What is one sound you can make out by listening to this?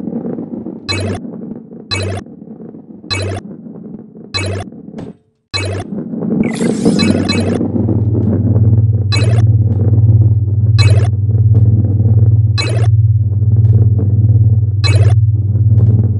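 Coins chime with short bright pings, again and again.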